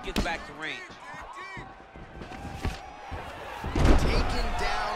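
Punches land on a body with heavy thuds.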